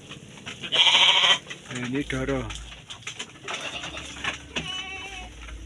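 Sheep bleat loudly close by.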